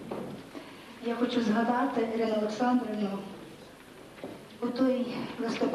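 An accordion ensemble plays music.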